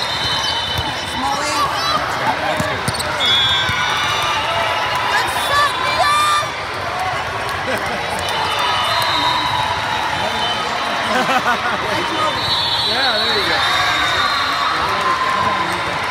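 A crowd of voices chatters and cheers in a large echoing hall.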